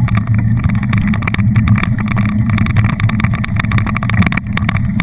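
Wind rumbles loudly across a microphone.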